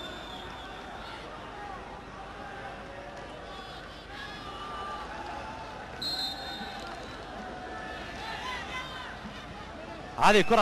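A large crowd murmurs and chants in a stadium.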